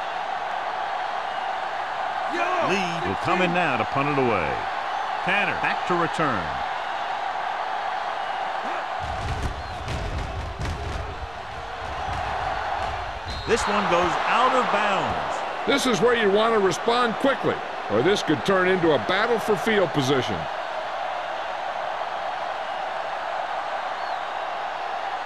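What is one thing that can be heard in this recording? A stadium crowd murmurs and roars steadily.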